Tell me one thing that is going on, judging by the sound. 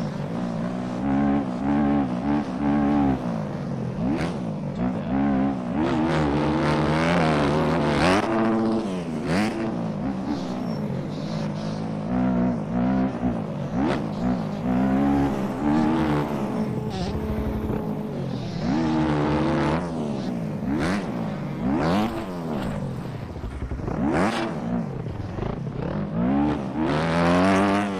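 A dirt bike engine revs up and down, rising and falling in pitch.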